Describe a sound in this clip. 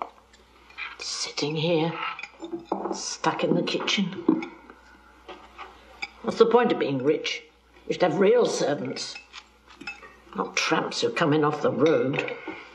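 A man talks calmly at a table.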